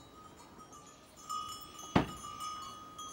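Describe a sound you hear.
A wooden barn door creaks and knocks open.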